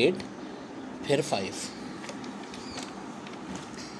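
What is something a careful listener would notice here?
A book page rustles as it turns.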